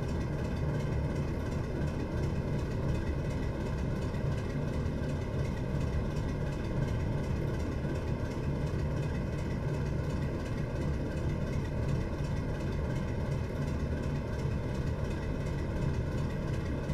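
Train wheels clatter steadily over rails.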